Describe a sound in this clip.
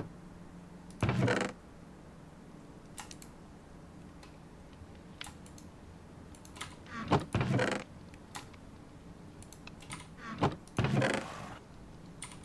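A wooden chest creaks open.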